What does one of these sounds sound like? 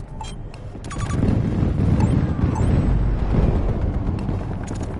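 A nearby explosion booms with a deep rumble.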